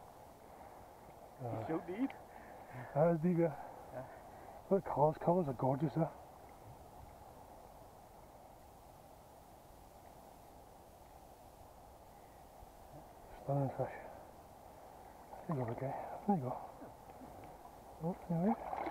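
A river flows steadily nearby.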